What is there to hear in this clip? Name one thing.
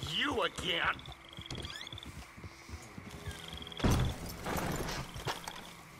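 A horse's hooves clop on the ground.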